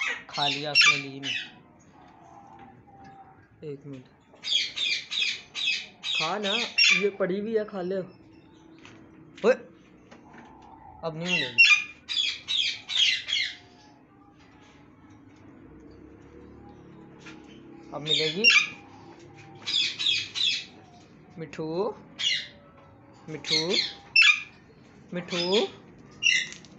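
A parrot makes lower, wavering chattering calls.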